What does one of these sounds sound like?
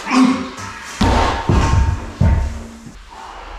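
A heavy dumbbell thuds onto the floor.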